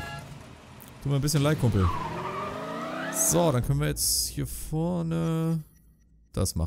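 A car engine starts and revs as the car pulls away.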